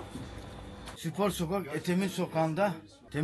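A middle-aged man speaks close to a microphone with animation.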